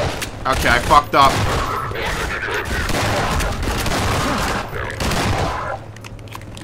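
Shotgun blasts and gunfire ring out rapidly.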